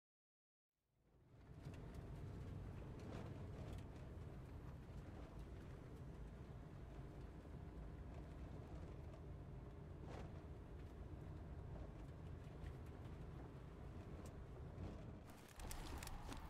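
A vehicle engine rumbles steadily, heard from inside the vehicle.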